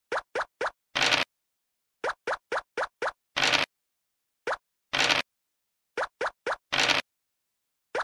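A die rattles briefly as it rolls.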